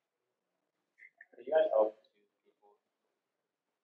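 An elderly man speaks briefly over an online call.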